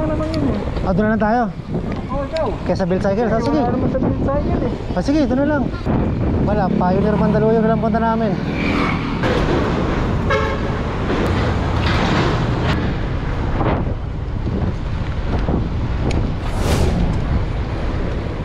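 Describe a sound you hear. Wind rushes loudly over a microphone outdoors.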